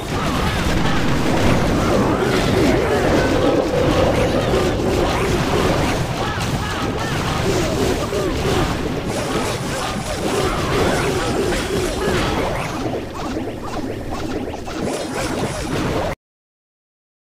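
Game battle sounds clatter with blasts and attacks.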